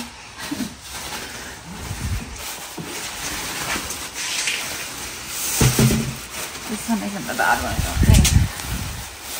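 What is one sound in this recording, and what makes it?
Plastic sheeting crinkles and rustles as a tyre is wrapped and unwrapped.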